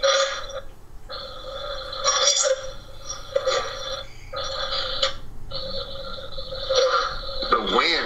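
A middle-aged woman speaks steadily over an online call.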